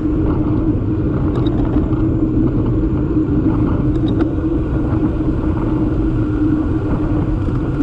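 Wind rushes loudly past, outdoors.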